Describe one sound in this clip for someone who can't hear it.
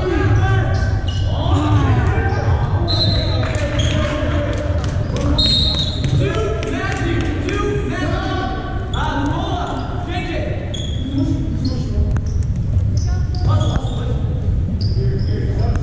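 Basketball shoes squeak sharply on a gym floor in a large echoing hall.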